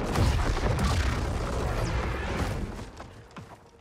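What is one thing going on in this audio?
Lightning crackles.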